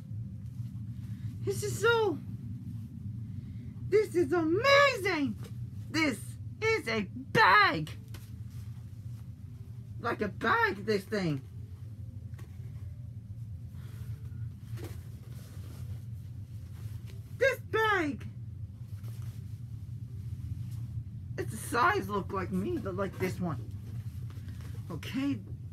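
Fabric rustles as a costume is handled.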